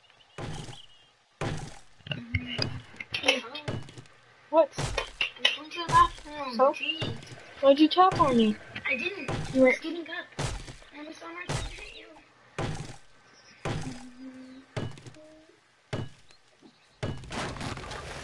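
An axe chops into wood with sharp, repeated thuds.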